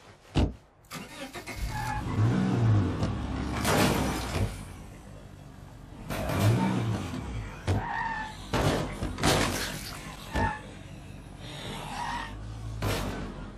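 A car engine runs and revs.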